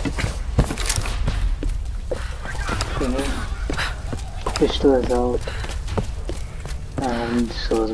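Footsteps crunch on leaves and dirt.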